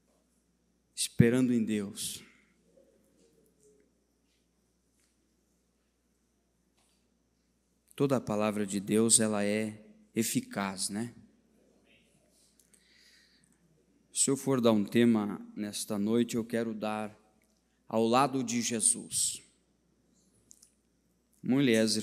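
A man speaks slowly and solemnly into a microphone, with long pauses.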